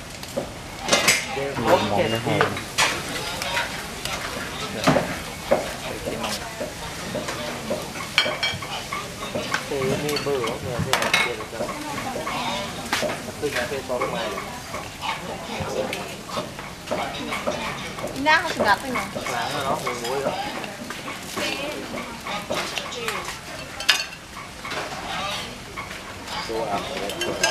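Voices of a crowd chatter in the background.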